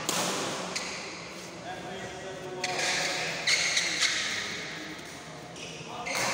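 Sounds echo in a large hall.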